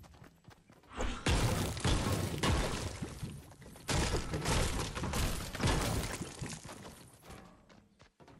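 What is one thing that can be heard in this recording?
A pickaxe strikes a brick wall again and again with loud crunching blows.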